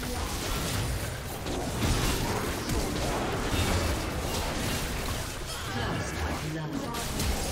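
Game spell effects clash and burst in a fight.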